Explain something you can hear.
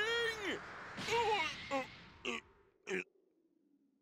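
A heavy punch lands with a thud.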